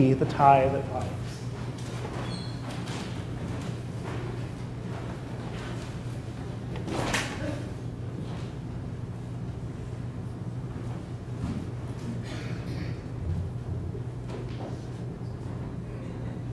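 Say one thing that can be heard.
A crowd of people murmurs and chatters quietly as people greet one another.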